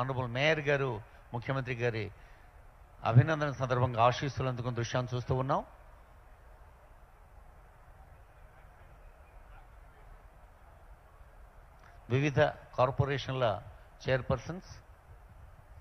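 A man speaks clearly into a microphone in short bursts.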